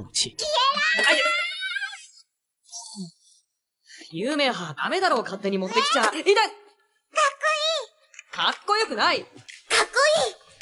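A young man shouts with animation.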